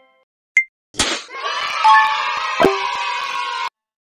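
A cheerful electronic reward jingle plays.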